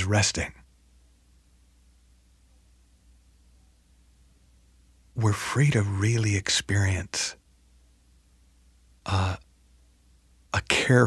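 A man speaks calmly and close to a microphone, with short pauses.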